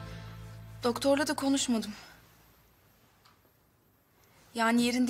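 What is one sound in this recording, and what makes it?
A young woman speaks quietly and close by.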